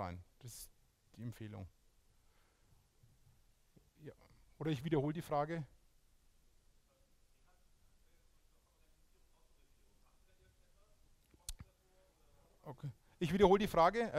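A man speaks into a microphone in a large hall, pausing between phrases.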